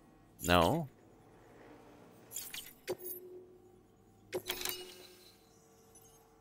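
Interface sound effects chime and swish as menu choices are made.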